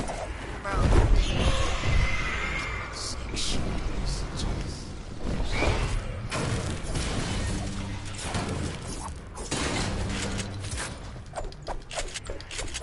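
A young man talks casually into a headset microphone.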